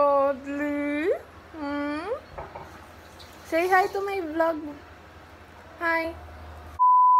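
A young woman sings and talks playfully up close.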